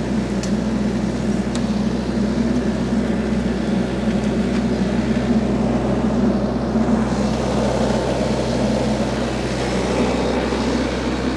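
A mower on a tractor grinds through brush and weeds.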